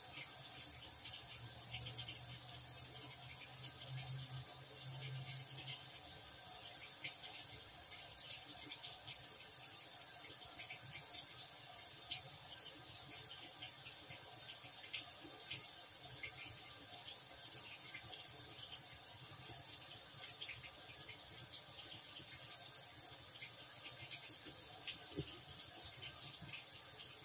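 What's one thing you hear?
A top-loading washing machine churns water during its rinse.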